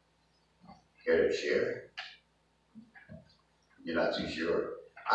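An older man speaks calmly nearby.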